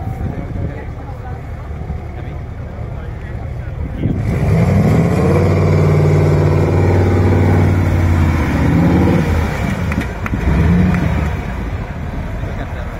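A truck's diesel engine rumbles and revs hard.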